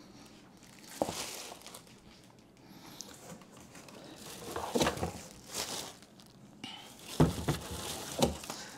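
Cardboard scrapes and thumps as a box is handled.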